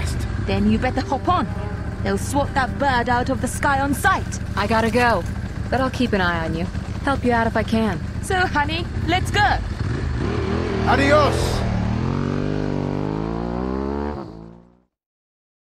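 A motorbike engine idles and then revs away.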